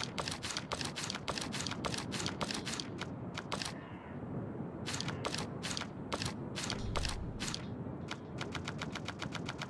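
Quick menu clicks tick again and again.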